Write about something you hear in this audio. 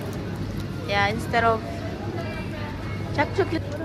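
Plastic wrappers crinkle as they are handled.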